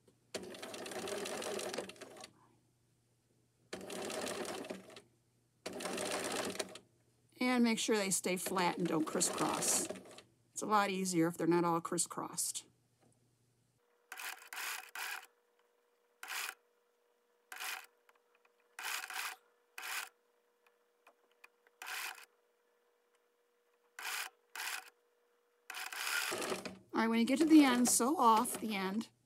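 A sewing machine stitches in short bursts, stopping and starting.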